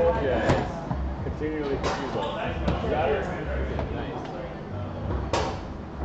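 Foosball rods clack and rattle as the players spin them.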